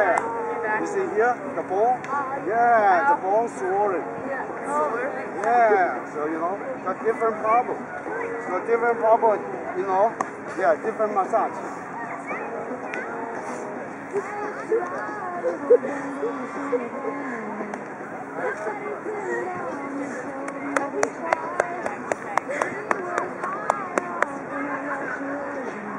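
Young women laugh and chat nearby outdoors.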